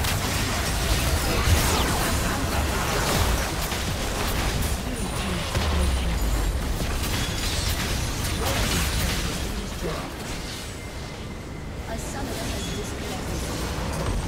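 Spells and weapons clash and burst in a fast, noisy fight.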